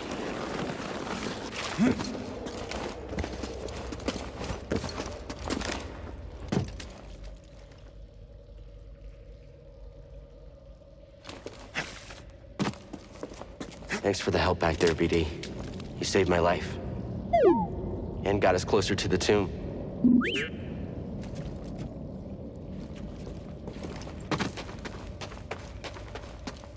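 Footsteps thud and scuff on stone.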